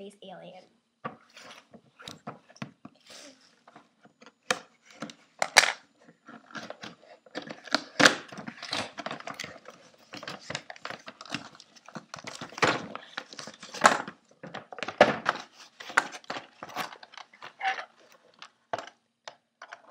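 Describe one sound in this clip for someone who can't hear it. Cardboard packaging rustles and scrapes as hands open a box.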